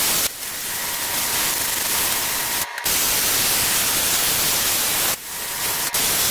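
A plasma torch hisses and roars loudly as it cuts through metal, with brief breaks.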